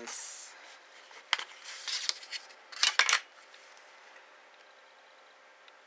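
A plastic ruler slides and taps on paper.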